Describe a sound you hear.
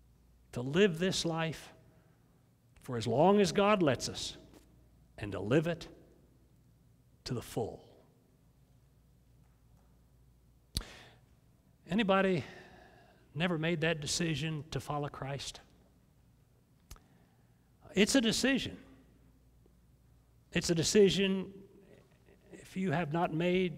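An elderly man speaks calmly in pauses through a microphone in a room with slight echo.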